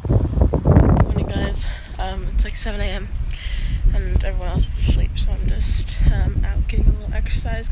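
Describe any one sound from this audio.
A young woman talks close to the microphone, in the wind.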